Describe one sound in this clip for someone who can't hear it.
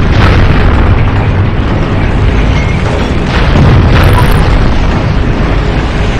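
Shells strike armour with sharp metallic bangs.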